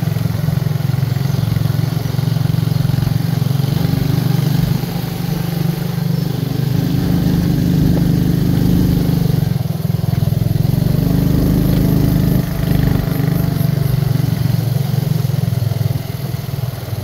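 A motorcycle engine hums steadily as it rides along a bumpy dirt trail.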